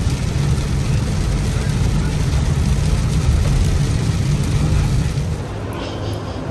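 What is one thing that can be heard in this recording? Heavy rain pelts a car windshield.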